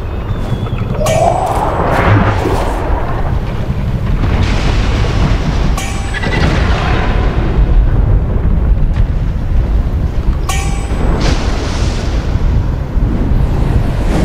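A whooshing cloud swells and fades in bursts.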